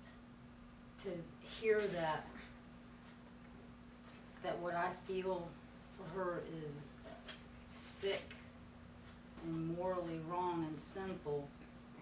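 A woman speaks calmly and haltingly, close by, with pauses between phrases.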